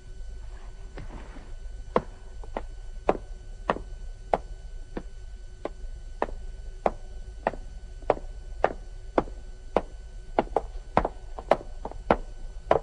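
Footsteps echo on a stone floor.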